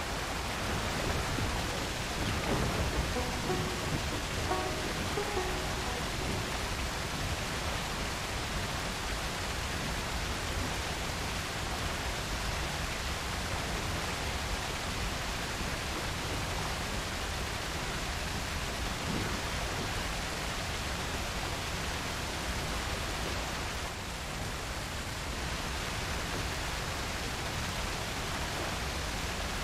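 A waterfall roars and splashes close by.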